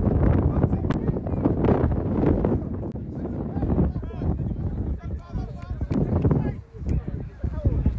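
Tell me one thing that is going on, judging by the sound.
A football is kicked with a thud.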